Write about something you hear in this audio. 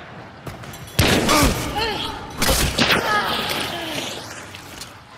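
A monster snarls and growls loudly.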